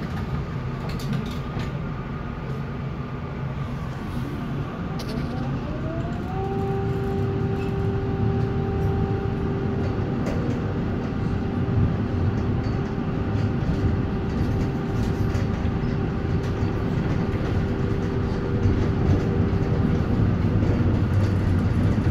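A tram rumbles and rattles along its rails.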